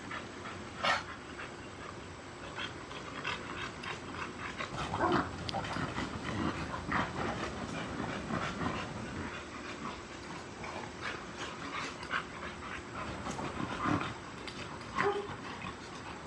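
Two dogs play-fight with growls and snarls.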